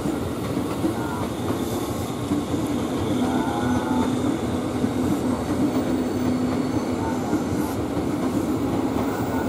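An electric train rumbles past close by, its wheels clattering over the rails.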